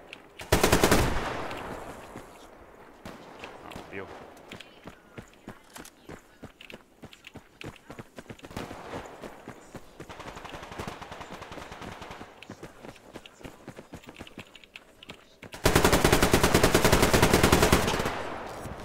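A heavy machine gun fires loud rapid bursts.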